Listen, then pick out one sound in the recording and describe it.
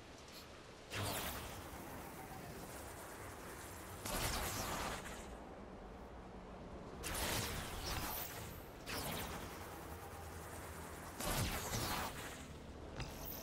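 A loud rushing whoosh sweeps past again and again.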